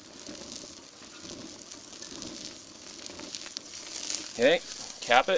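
Meat sizzles on a hot grill.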